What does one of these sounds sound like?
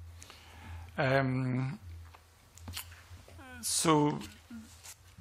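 An elderly man speaks slowly into a microphone in short, drawn-out phrases.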